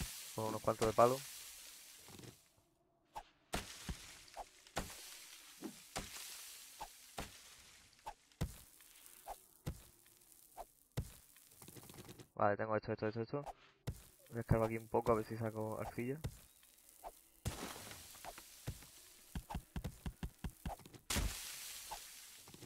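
A stone axe chops at dry brush and ground with dull knocks.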